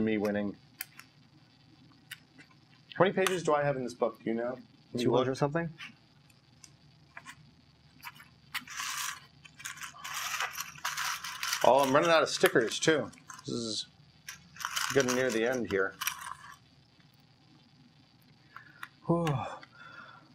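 Small plastic bricks click and rattle as they are handled and snapped together.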